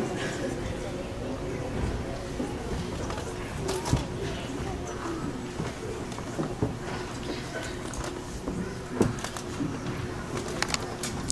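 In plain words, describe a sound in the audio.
Young children sing together in a room that echoes.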